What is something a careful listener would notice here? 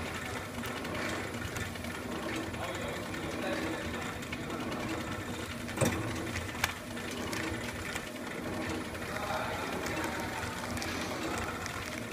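Plastic packets rustle as a conveyor carries them along.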